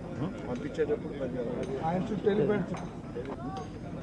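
Several men talk with each other nearby.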